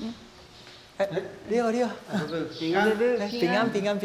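A woman greets someone warmly in an echoing room.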